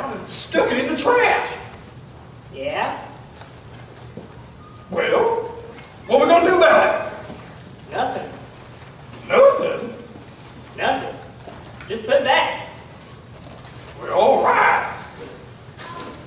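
A young man speaks lively lines in a slightly echoing room.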